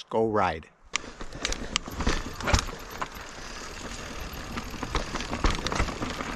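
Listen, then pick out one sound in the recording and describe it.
Bike tyres crunch and rattle over a rough dirt trail.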